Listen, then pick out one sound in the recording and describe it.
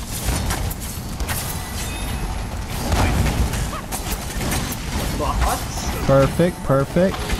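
Game gunfire and explosions crackle and boom.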